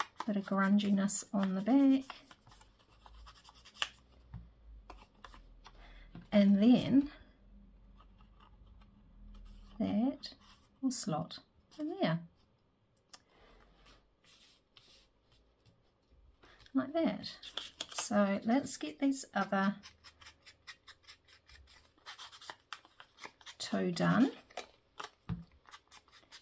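Paper rustles softly as it is handled.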